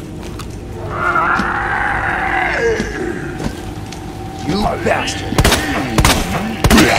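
A zombie groans and moans.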